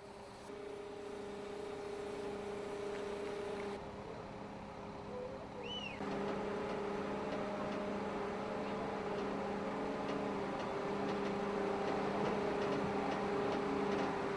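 A crane engine hums steadily.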